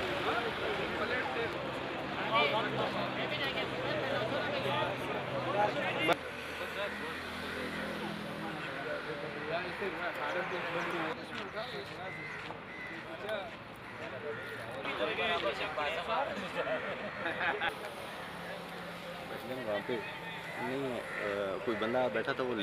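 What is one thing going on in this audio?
A large crowd of men murmurs and chatters outdoors.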